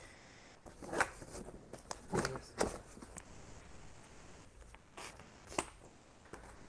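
Plastic buckles click as straps are fastened.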